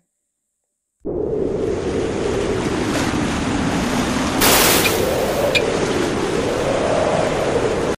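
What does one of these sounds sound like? Ice breaks off a glacier and crashes into water with a deep, steady roar.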